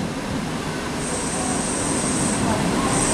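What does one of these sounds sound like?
Train brakes squeal with a high, steady screech.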